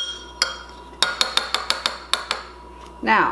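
A metal spoon stirs and clinks against a glass bowl.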